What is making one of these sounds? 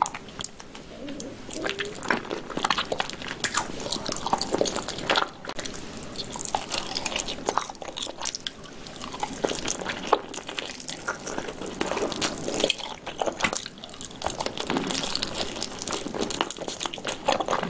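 A young woman slurps sauce close to a microphone.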